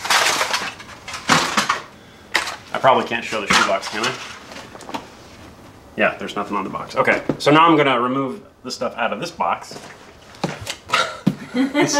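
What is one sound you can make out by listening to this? A cardboard box scrapes and thumps on a table.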